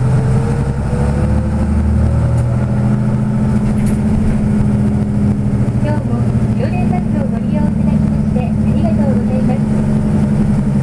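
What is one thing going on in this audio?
A car engine hums steadily from inside a moving vehicle.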